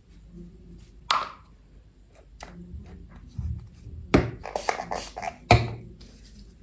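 A pump bottle clicks and squirts foam.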